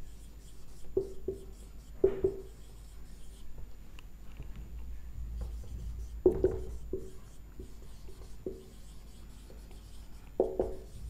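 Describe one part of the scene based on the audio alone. A marker squeaks and taps on a whiteboard in short strokes.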